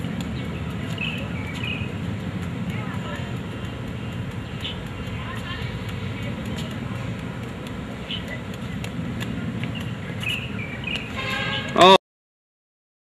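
Juggling balls slap softly into hands, over and over.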